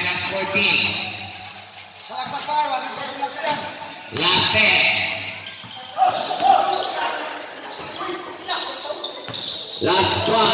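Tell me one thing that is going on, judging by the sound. A crowd of spectators shouts and cheers in a large echoing hall.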